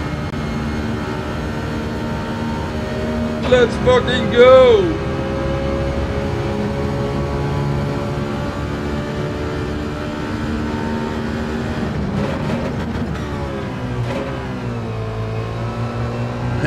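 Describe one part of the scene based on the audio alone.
A race car engine drones steadily, rising and falling with speed.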